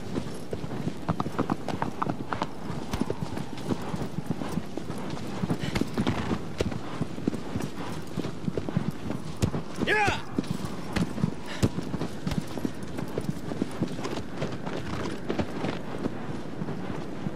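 A horse gallops, its hooves thudding on grass.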